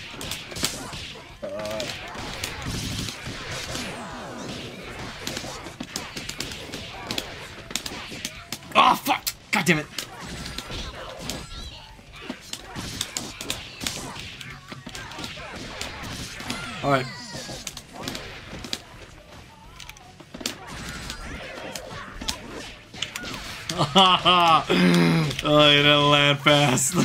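Fighting-game punches and kicks land with sharp slaps and thuds.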